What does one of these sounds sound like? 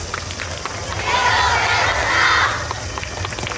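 A large group of dancers shouts together loudly outdoors.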